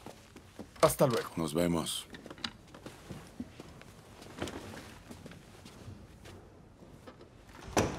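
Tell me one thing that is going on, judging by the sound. Footsteps shuffle across a carpeted floor.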